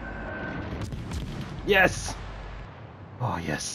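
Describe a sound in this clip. Naval guns fire with heavy booms.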